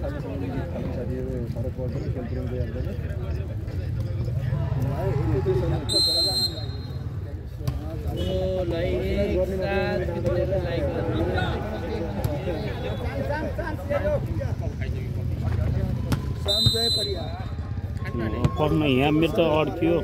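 Voices of a crowd of young men chatter and call out outdoors.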